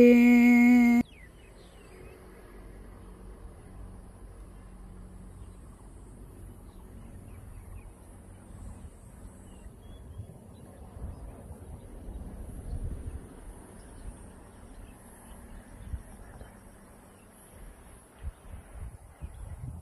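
Wind blows softly across an open field, rustling the rice plants.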